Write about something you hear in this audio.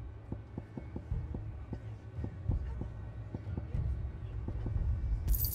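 Soft menu clicks tick quickly as a list scrolls.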